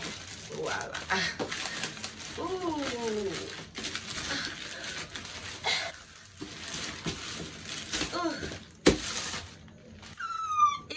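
Plastic packaging rustles and crinkles as it is torn open.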